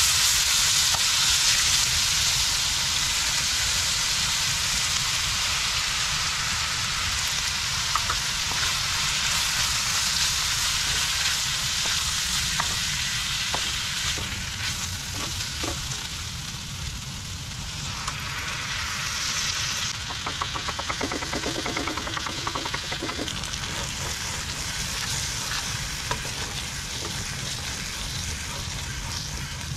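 Food sizzles and hisses steadily in a hot pan.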